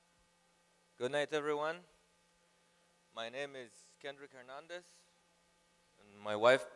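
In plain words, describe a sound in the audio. A younger man speaks through a microphone in short bursts, with pauses between them.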